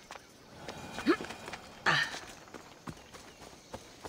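Footsteps scrape over rock and grass.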